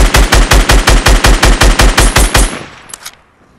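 Rapid gunshots fire in a fast, loud burst.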